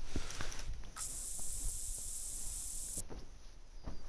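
A spray can hisses in a short burst.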